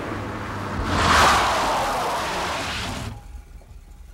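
Tyres screech as a car brakes hard.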